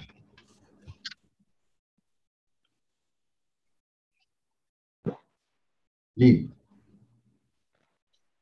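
An elderly man speaks in short bursts over an online call.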